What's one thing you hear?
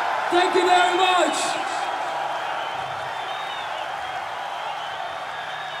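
A large crowd cheers and roars in a big echoing hall.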